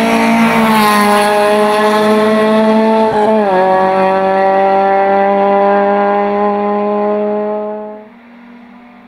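A racing car engine roars loudly at high revs as the car speeds away, then fades into the distance.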